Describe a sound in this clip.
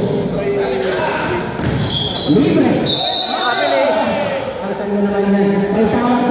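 Sneakers squeak sharply on a wooden floor in an echoing hall.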